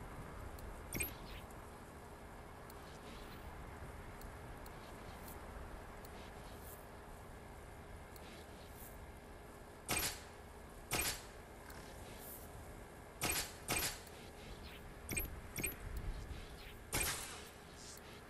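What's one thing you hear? Short interface clicks and whooshes sound as game menu options change.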